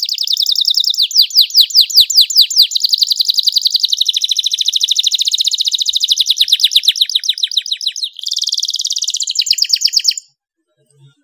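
A small songbird sings a long, fast, trilling song up close.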